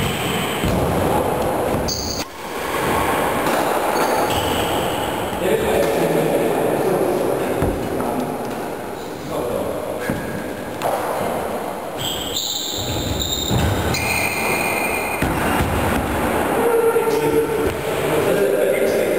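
Badminton rackets hit a shuttlecock back and forth in a large echoing hall.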